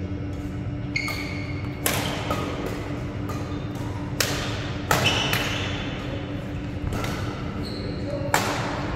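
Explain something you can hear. Rackets smack a shuttlecock back and forth in a large echoing hall.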